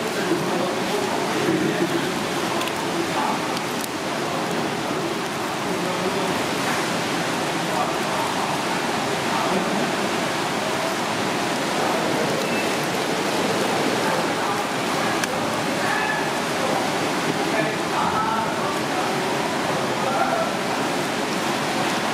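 Crispy shells crack and crunch.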